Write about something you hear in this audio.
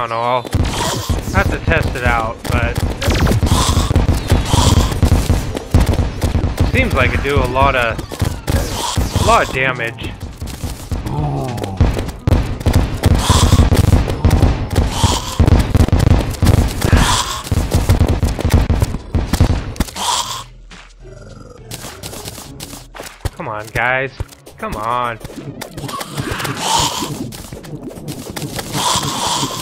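Rapid video game hit and weapon sounds clatter repeatedly.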